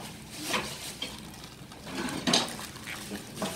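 A spoon scrapes and clacks against a metal bowl.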